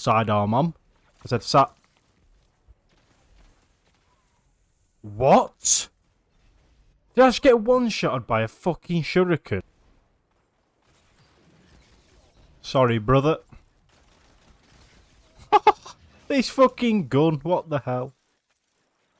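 A young man talks with animation, close to a microphone, in short bursts.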